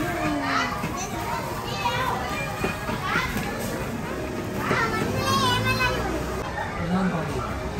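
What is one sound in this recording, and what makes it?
Plastic balls rustle and clatter as children move in them.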